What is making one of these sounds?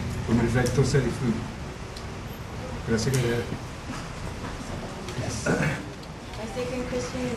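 An elderly man speaks into a microphone in bursts.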